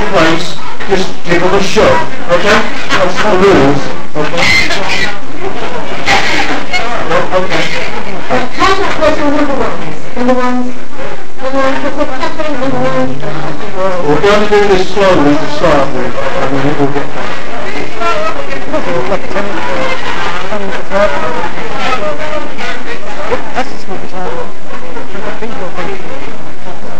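A crowd of men and women chatters loudly all around in a large echoing hall.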